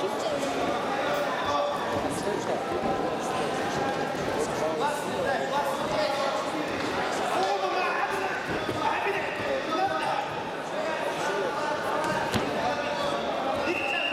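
Wrestlers' feet shuffle and thud on a mat.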